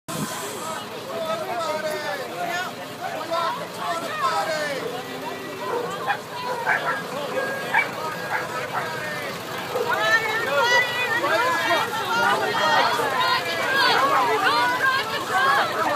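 Several men and women talk over one another close by, outdoors.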